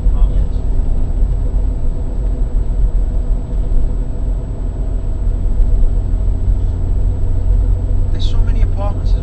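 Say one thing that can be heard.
A car engine hums steadily with road rumble from inside a moving car.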